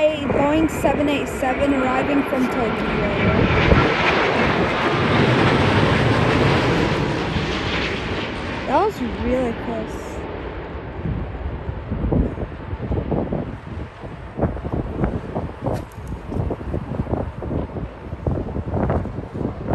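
A jet airliner roars loudly overhead as it comes in to land, then fades into the distance.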